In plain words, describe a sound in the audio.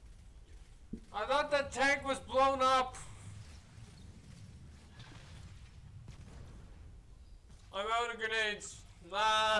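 A young man talks loudly and excitedly into a microphone.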